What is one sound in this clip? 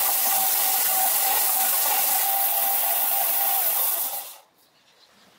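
A belt grinder grinds a metal plane body.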